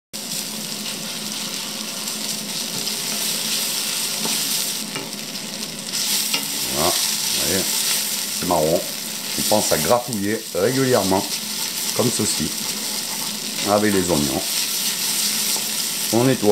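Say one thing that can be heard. A wooden spoon scrapes and stirs in a pan.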